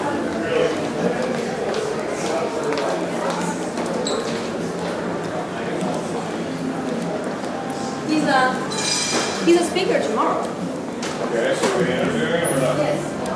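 A woman talks nearby in an echoing hall.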